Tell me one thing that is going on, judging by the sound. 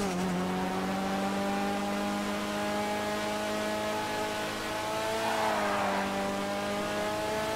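A race car engine drones steadily at high revs.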